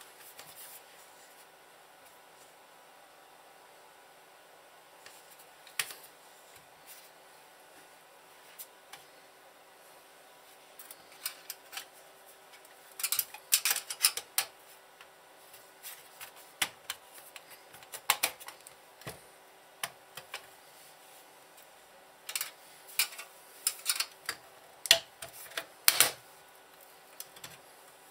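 Metal parts clink and click as hands work on a metal casing.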